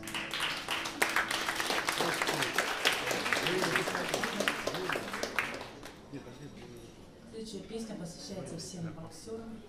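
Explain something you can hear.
A band plays live music.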